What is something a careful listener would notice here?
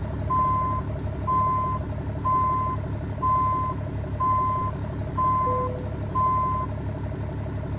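A truck's reversing alarm beeps at a steady pace.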